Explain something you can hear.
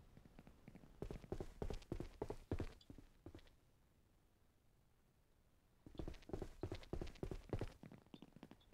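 Footsteps thud across a wooden floor.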